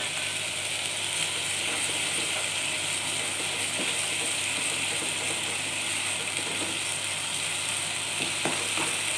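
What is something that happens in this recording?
A spatula scrapes and stirs through a thick sauce in a pan.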